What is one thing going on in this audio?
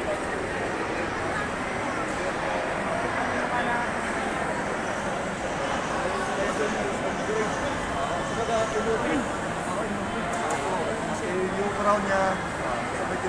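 A crowd chatters in a busy, echoing hall.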